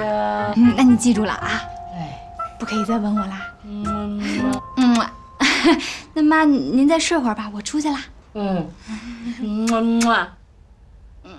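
A young woman talks calmly and warmly, close by.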